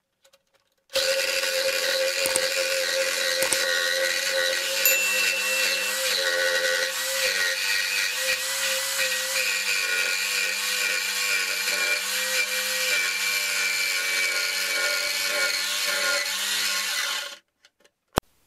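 A cordless reciprocating saw cuts through metal.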